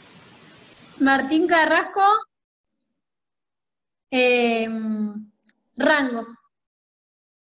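A young woman speaks calmly over an online call, in short phrases.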